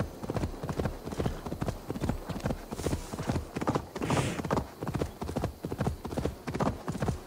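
Hooves gallop rapidly over soft ground.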